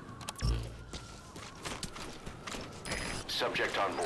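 A soldier's gear rustles as he crawls through dry grass.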